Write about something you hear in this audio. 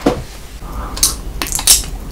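A young man slurps and sucks liquid loudly close to a microphone.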